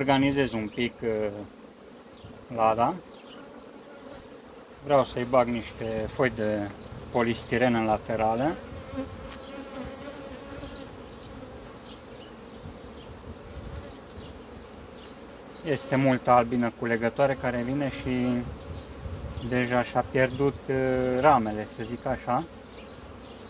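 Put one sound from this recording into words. A person talks in short bursts.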